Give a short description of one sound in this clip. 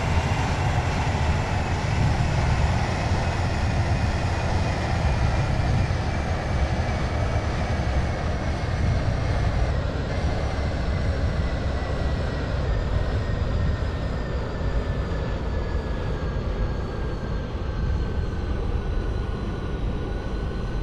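A train's wheels rumble steadily on the rails.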